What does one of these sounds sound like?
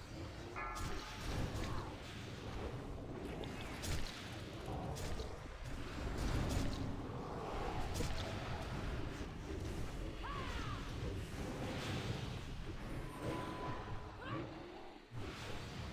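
Spells burst with sharp blasts.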